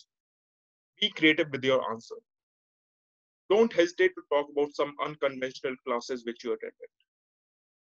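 A young man speaks calmly into a microphone, as if on an online call.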